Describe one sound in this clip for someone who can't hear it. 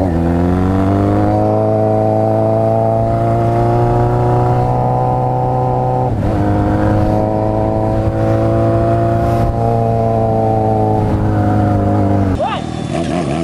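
A motorcycle engine roars loudly up close, its pitch climbing as it shifts through the gears.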